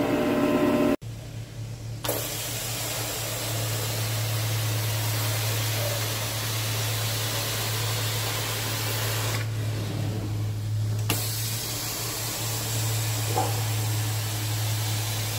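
A vacuum motor drones steadily.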